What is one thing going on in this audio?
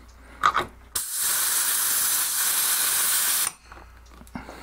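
A power drill whirs steadily.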